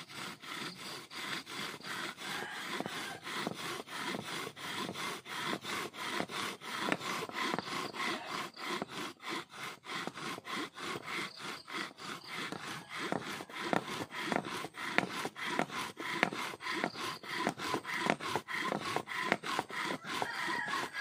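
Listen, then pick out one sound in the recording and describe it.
A wooden drill rasps and squeaks in a quick back-and-forth rhythm.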